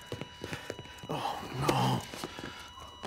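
A man cries out in dismay.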